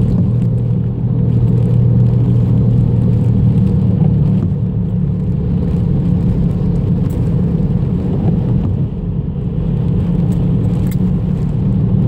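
Raindrops tap on a windshield.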